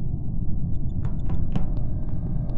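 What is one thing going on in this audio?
Short electronic chimes sound.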